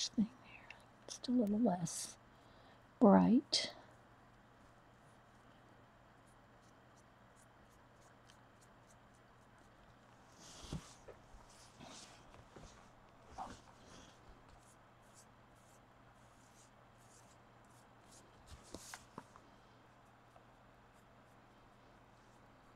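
A paintbrush dabs and brushes softly on a hard surface.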